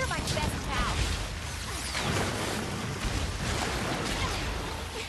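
Water splashes and churns loudly as a large creature thrashes through it.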